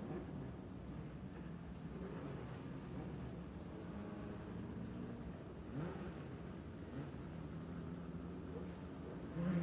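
A race car engine drones as it drives past up close.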